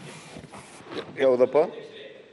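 An older man speaks loudly and with animation into a microphone.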